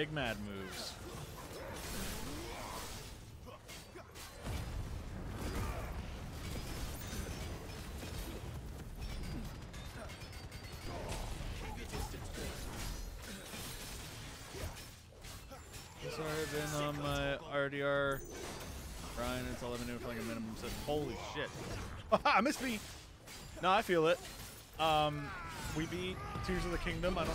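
Swords clash and ring.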